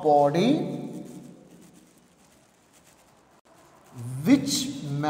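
A man speaks in a lecturing tone.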